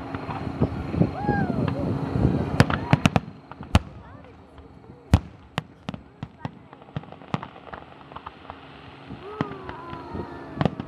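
Fireworks whistle as they rise.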